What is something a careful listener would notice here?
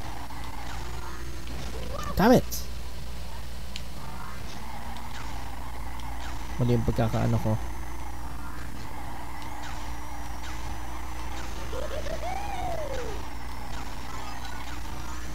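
A racing kart engine whines steadily.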